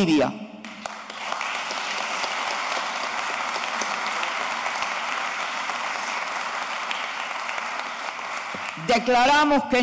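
A large audience murmurs and applauds in an echoing hall.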